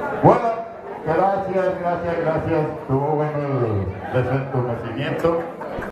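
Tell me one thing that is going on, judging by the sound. An elderly man speaks into a microphone through a loudspeaker.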